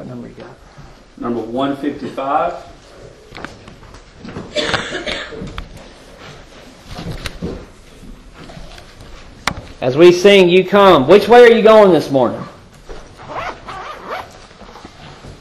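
A man preaches with animation into a microphone.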